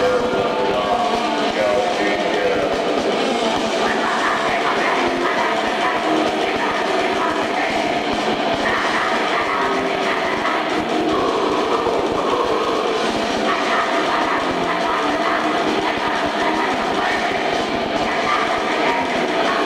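A loud heavy metal band plays live, with a muffled, distorted sound.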